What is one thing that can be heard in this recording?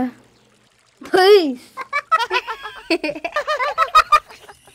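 A squeaky, cartoonish voice talks quickly with animation close by.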